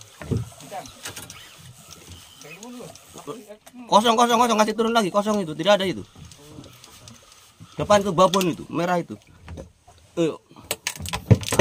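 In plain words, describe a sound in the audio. A fishing reel clicks as line is wound in.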